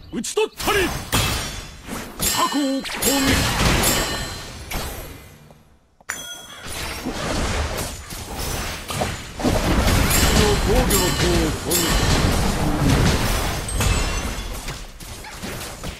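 Video game combat effects clash and burst as characters fight.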